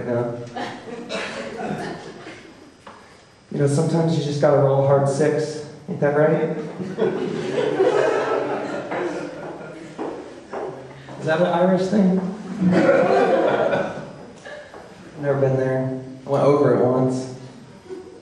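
An acoustic guitar strums along.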